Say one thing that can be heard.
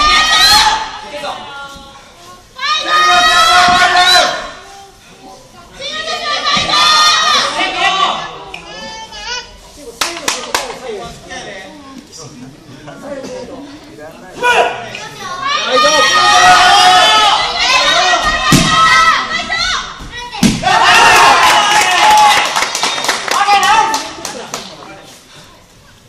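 Spectators shout loudly in bursts in an echoing hall.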